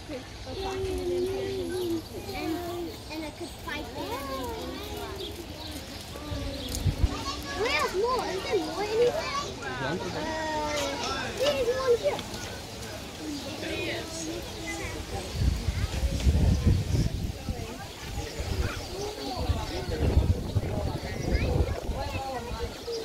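Young children talk and call out excitedly close by.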